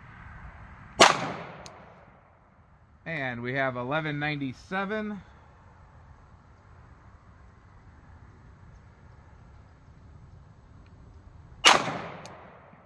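A handgun fires a single loud shot that echoes outdoors.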